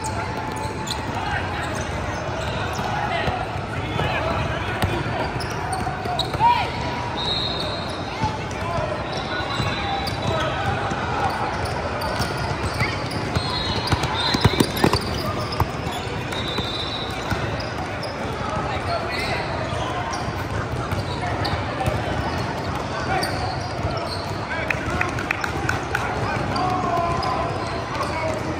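Young players call out and shout across a large echoing hall.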